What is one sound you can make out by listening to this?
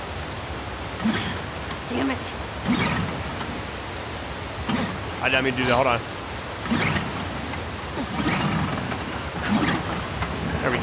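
A small outboard motor sputters as its starter cord is pulled.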